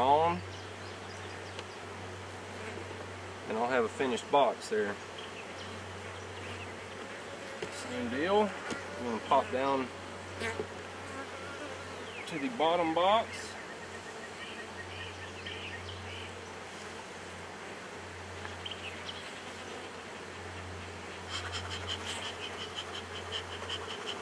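Bees buzz steadily close by.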